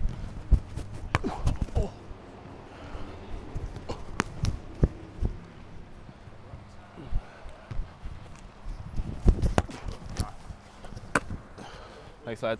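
Footsteps thump and scuff on artificial turf.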